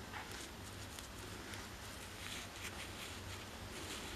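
Soil crumbs patter onto fabric.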